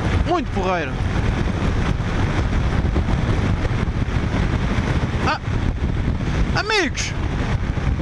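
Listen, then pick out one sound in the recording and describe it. A motorcycle engine hums steadily at highway speed.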